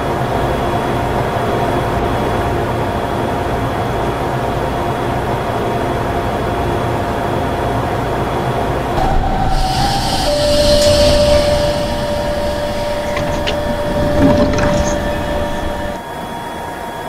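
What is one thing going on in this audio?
A train rumbles steadily as it rolls along.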